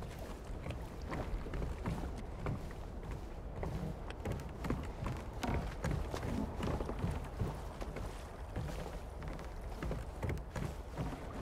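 Footsteps thud on wooden planks at a steady walking pace.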